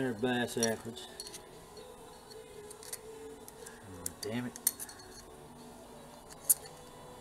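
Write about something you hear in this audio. Metal engine parts click and clink as they are fitted together.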